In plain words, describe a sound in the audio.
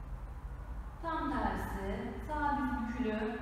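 A woman speaks calmly.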